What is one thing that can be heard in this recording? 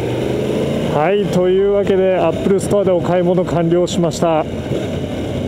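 A motorcycle engine revs up sharply several times as gears change.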